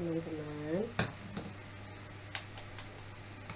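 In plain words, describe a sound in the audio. An eggshell cracks against a bowl's rim.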